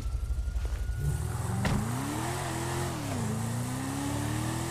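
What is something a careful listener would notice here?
A sports car engine revs as it pulls away.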